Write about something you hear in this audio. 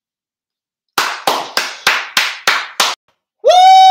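A man claps his hands in a quick steady rhythm.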